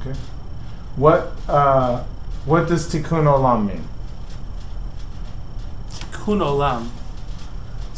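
A man speaks calmly close by, in short phrases.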